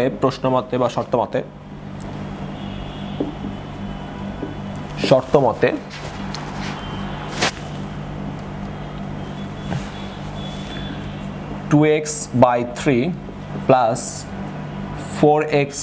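A young man talks calmly, close by, in short bursts.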